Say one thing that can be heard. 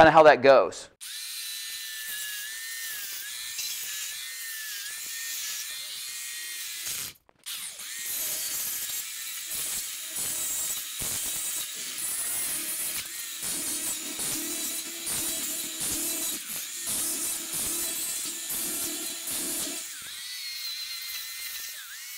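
An electric chainsaw whines steadily as it cuts into a wall.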